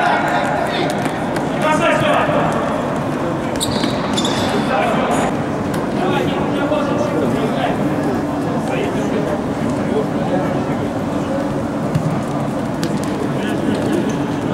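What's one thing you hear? A ball is kicked on a hard indoor court, echoing in a large hall.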